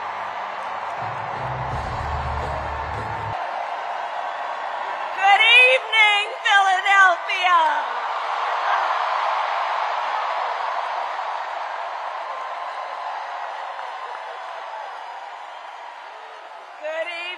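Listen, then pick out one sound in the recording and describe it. A large crowd cheers and applauds loudly in a big echoing arena.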